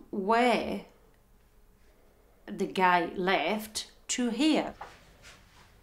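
A woman speaks close by in a flat, halting voice.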